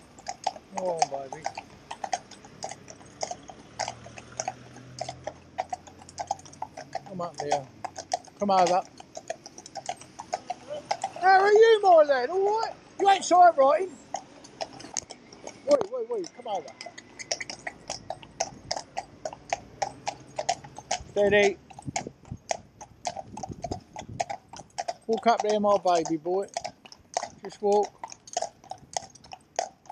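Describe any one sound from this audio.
Horses' hooves clop steadily on a paved road.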